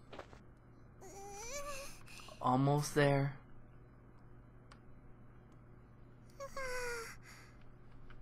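A young man groans and speaks into a close microphone.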